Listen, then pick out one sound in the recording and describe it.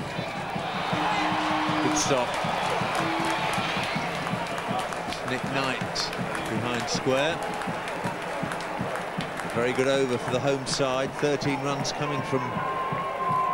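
A crowd cheers and roars in a large open stadium.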